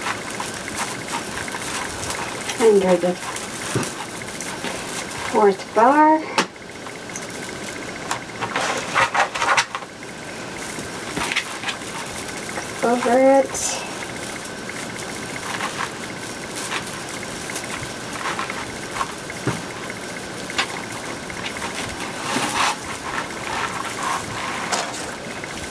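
Stiff mesh ribbon rustles and crinkles as it is handled.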